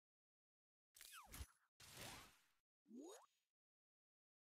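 Game sound effects whoosh and rise in pitch.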